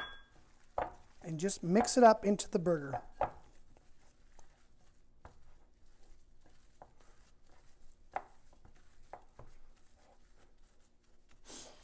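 Hands squish and knead raw ground meat in a bowl.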